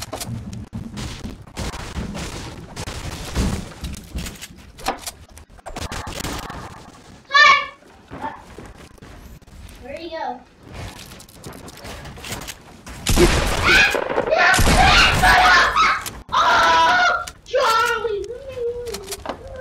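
Wooden panels clatter and thud into place.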